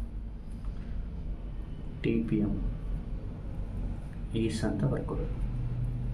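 A marker pen scratches softly on paper.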